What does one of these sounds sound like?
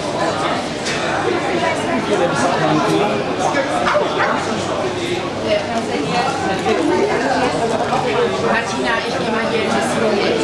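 A crowd of adults chatters nearby indoors.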